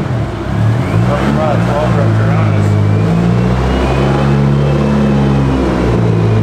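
A car engine rumbles low as the car rolls slowly forward.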